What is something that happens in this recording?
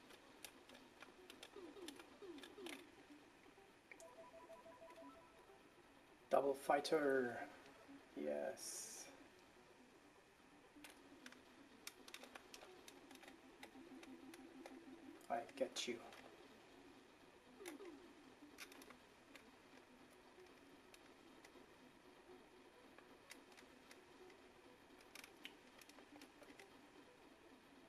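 A joystick clicks as it is worked.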